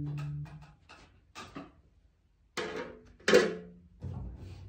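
A double bass plays a few deep notes.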